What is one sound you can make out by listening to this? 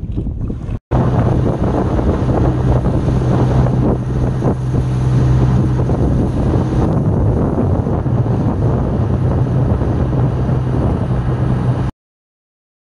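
Wind blows past.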